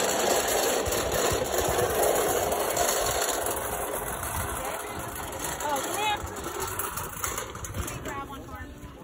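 Small plastic wagon wheels rattle and rumble over pavement.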